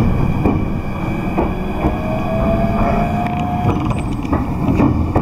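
A car engine rumbles steadily while driving along a road.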